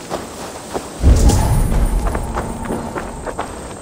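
A heavy thud and deep boom hits, then slowly fades.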